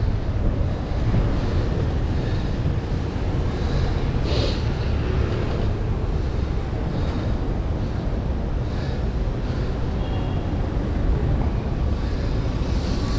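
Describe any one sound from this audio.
Bicycle tyres roll over rough pavement.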